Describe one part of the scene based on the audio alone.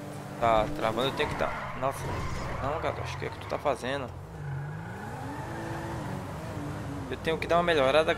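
Car tyres screech while drifting.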